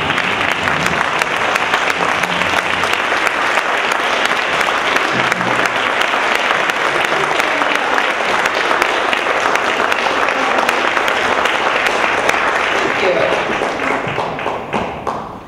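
A large audience applauds loudly and steadily, fading out at the end.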